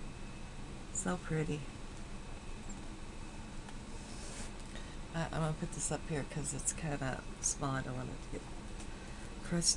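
A middle-aged woman speaks close to a microphone in short bursts.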